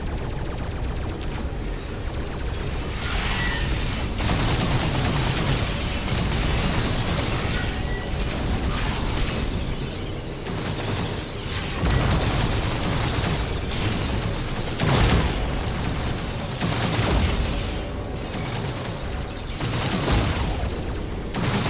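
Laser shots fire rapidly in a video game.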